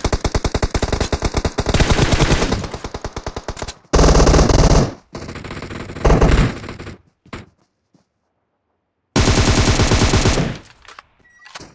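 A rifle fires rapidly in loud bursts.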